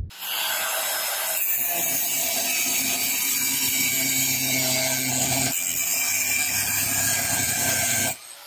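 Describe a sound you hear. An angle grinder whines at high speed.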